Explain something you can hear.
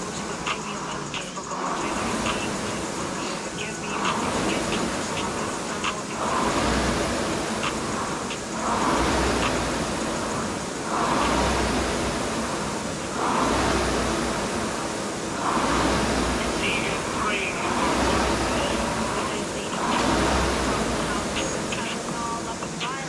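A rowing machine's flywheel whooshes in rhythmic surges with each stroke.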